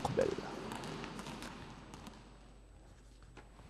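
Sneakers squeak and thud on a gym floor in a large echoing hall.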